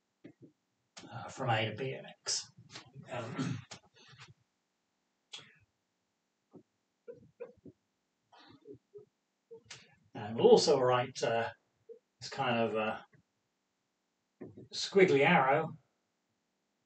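A man speaks calmly and clearly into a microphone, in bursts with pauses.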